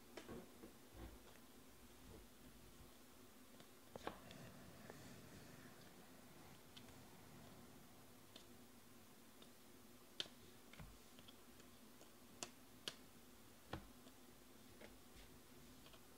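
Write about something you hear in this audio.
Trading cards click and rustle as they are shuffled by hand.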